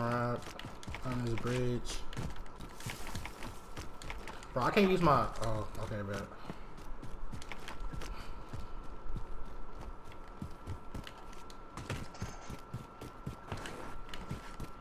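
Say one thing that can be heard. Footsteps thud quickly over rough ground.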